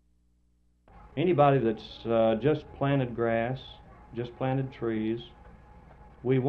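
A man speaks calmly and clearly, close up.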